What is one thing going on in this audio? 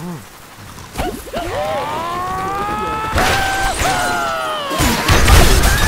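A cartoon bird squawks as it is flung through the air.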